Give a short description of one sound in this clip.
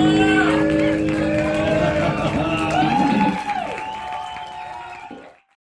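An electric guitar plays a bending melody through an amplifier.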